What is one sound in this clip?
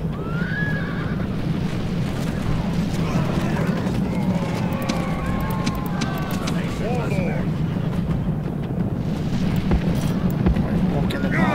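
A large crowd of soldiers roars and shouts in the distance.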